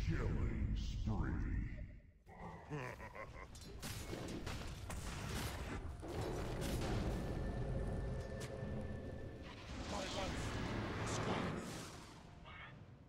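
Blades clash and magic spells burst in a fast fight.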